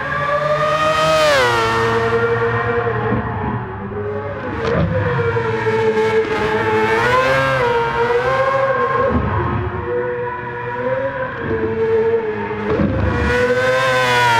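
A racing car engine roars loudly at high revs, rising and falling as the car shifts gears and slows for corners.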